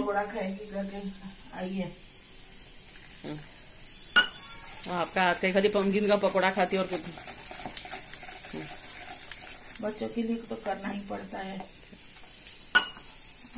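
Oil sizzles softly in a frying pan.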